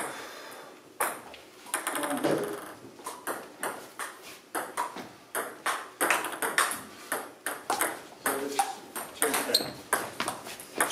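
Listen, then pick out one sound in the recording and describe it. A ping-pong ball clicks rapidly back and forth on paddles and a table in an echoing hall.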